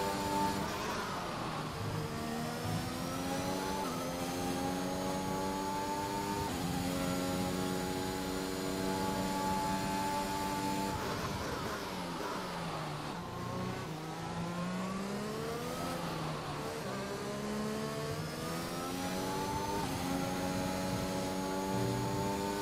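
A racing car engine screams at high revs, rising through the gears and dropping as it slows for corners.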